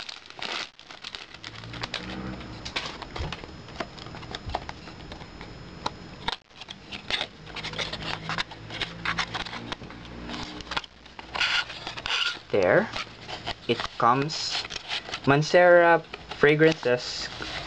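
Cardboard packaging rustles and scrapes as hands open a box.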